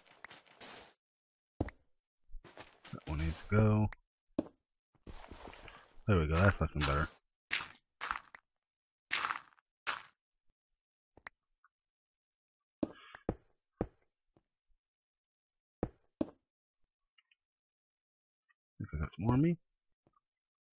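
Blocks of dirt and stone crunch as they are dug away.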